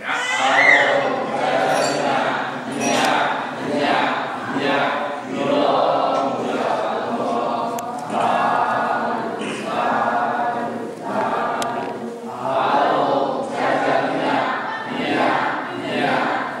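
An elderly man speaks calmly and steadily through a microphone in a large echoing hall.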